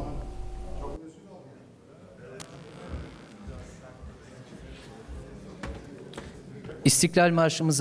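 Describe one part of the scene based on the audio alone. People shuffle and chairs knock as an audience sits down.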